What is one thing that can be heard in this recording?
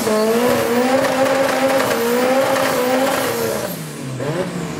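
Tyres screech and squeal against the tarmac.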